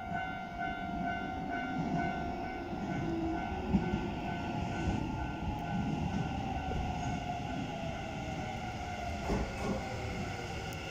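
Train brakes squeal with a steady high whine.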